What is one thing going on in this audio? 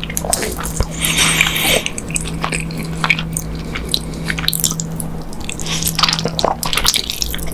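A person slurps noodles loudly close up.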